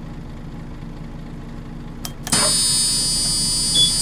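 Bus doors hiss and close.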